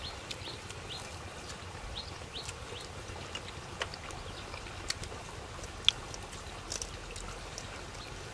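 A man chews and smacks his lips loudly, close to the microphone.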